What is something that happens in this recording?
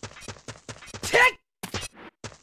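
A game character grunts as it climbs up a ledge.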